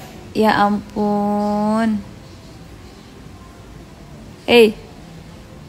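A young girl speaks and makes short playful vocal sounds close by.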